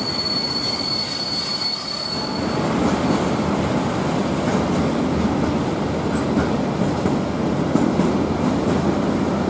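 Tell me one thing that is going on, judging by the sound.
A freight train rumbles past nearby, wheels clattering on the rails.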